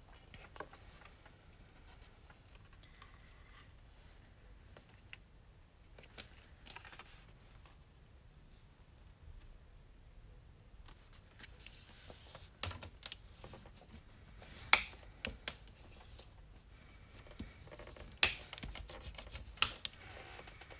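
Paper rustles and slides as it is folded.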